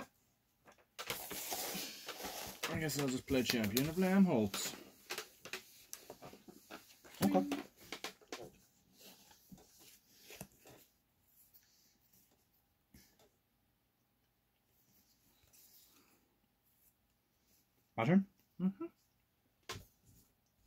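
Playing cards slide softly across a cloth-covered table.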